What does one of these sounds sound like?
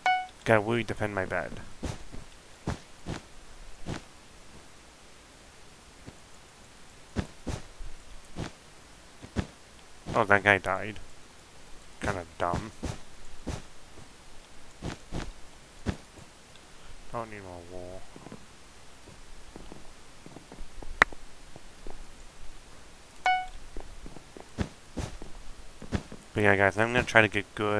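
Blocks are placed one after another with soft, quick thuds.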